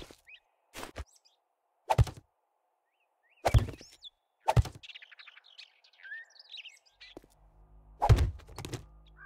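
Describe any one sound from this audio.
Wooden blocks thud into place with sharp knocks.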